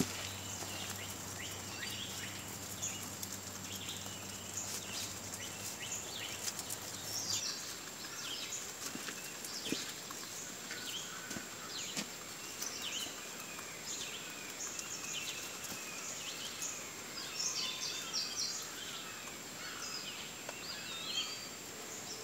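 Rabbits munch and crunch on fresh leafy greens up close.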